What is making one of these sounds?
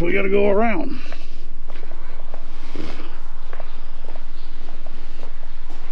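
Footsteps walk on concrete outdoors.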